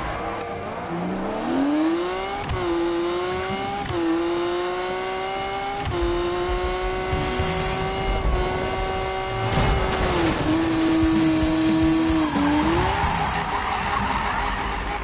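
A sports car engine roars and climbs in pitch through gear changes.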